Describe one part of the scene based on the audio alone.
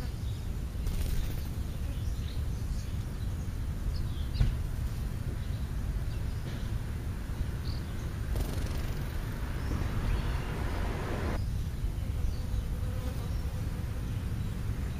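Wind buffets outdoors with a low, steady rumble.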